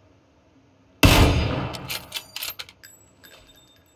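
A rifle shot bangs loudly and echoes.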